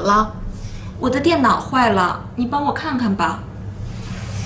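A young woman speaks close by with some concern.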